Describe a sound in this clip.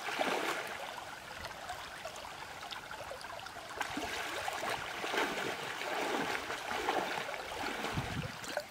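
Water splashes as a person wades through a stream.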